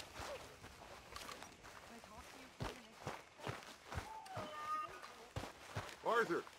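Footsteps tread over grass and wooden boards.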